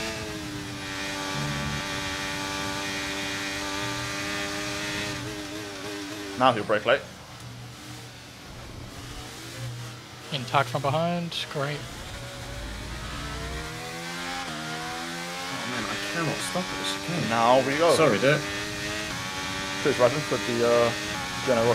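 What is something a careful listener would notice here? A racing car engine roars and shifts pitch as it speeds up and slows down.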